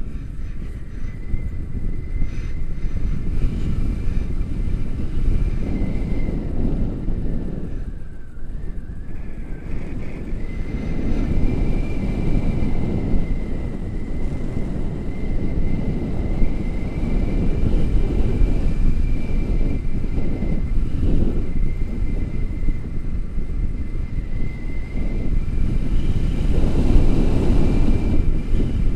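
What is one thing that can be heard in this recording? Wind rushes and buffets loudly against a microphone outdoors.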